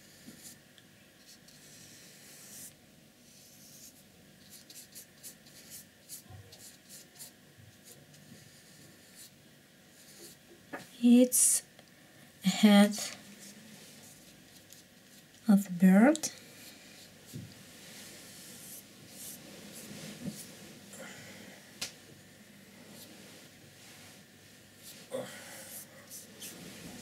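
A brush softly strokes across paper.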